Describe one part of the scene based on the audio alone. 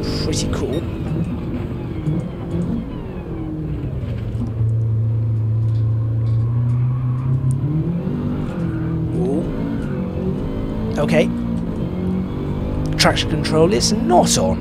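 A racing car engine drones, dropping in pitch as the car slows and rising again as it speeds up.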